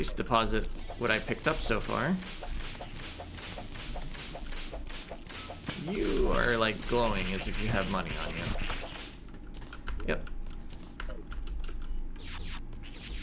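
Short zapping game sound effects fire in quick succession.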